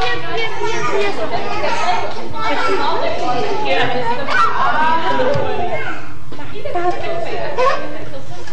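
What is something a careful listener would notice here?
A young woman talks gently and closely to small children.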